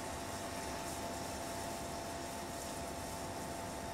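Liquid pours into a saucepan.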